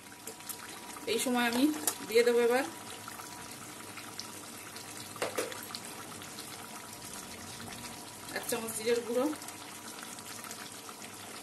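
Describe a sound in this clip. A thick stew bubbles gently in a pan.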